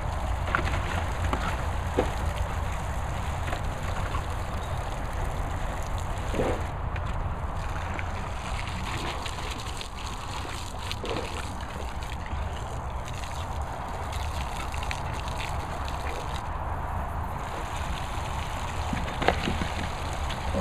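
Water sprays and splashes from a sprinkler onto grass.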